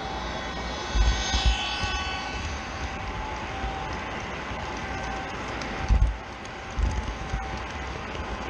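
Wind buffets loudly in gusts.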